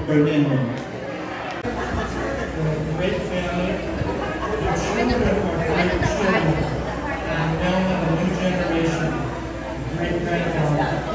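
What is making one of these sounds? Guests chatter quietly in the background.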